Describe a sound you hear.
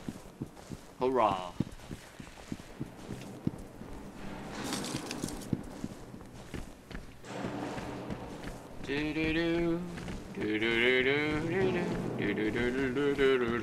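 A young man speaks close to a microphone, in a hushed, tense voice.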